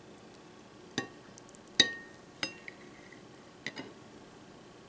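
A knife clicks and taps against a glass plate.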